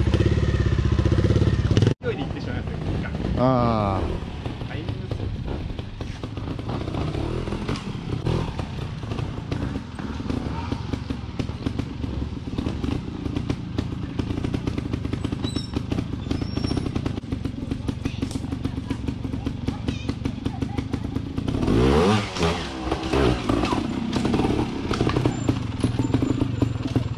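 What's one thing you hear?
A motorcycle engine putters and idles nearby.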